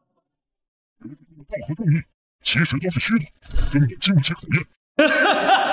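An elderly man speaks menacingly through a microphone.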